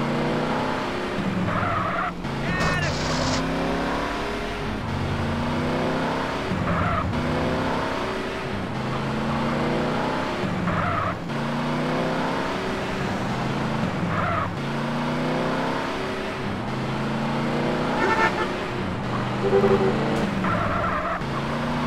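A car engine revs up and down through repeated gear changes.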